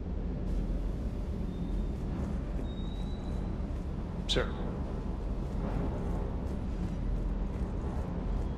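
Footsteps tap steadily on a metal floor.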